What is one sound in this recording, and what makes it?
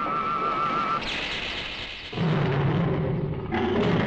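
A building crashes and crumbles with a loud rumble.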